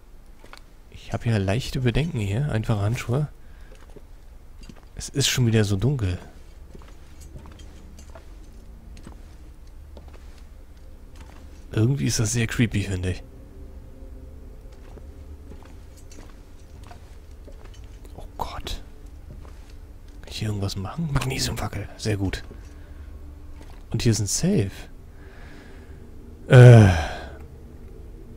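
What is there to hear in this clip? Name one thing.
A man talks in short bursts close to a microphone.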